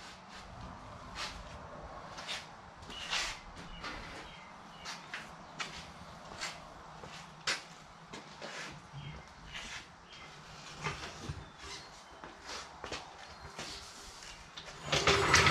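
A floor jack clicks and clanks as its handle is worked.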